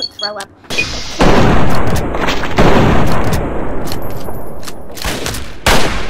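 Loud gunfire and blasts rumble in a long burst.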